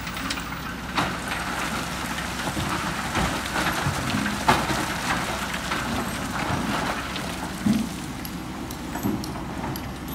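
Metal clanks and knocks sharply.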